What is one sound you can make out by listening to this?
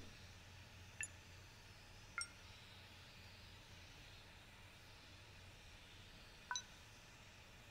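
Short electronic beeps sound as keypad buttons are pressed.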